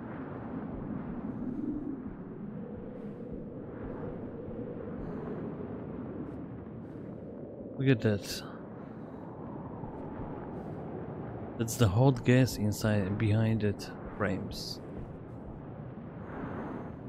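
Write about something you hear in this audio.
A sandstorm rushes steadily in the wind.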